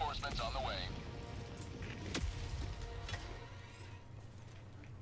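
Rocket thrusters roar loudly.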